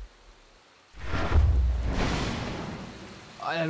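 A magic blast whooshes with an icy rush.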